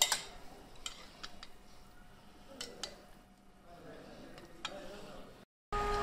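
Chopsticks clink against a metal bowl.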